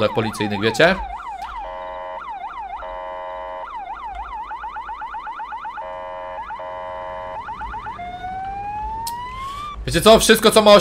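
A police siren wails and yelps in rapid bursts.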